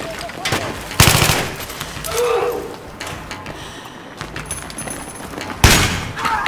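A rifle fires loud shots that ring in a room.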